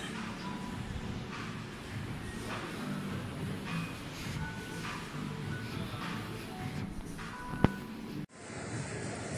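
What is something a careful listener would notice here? Voices and footsteps murmur in a large echoing hall.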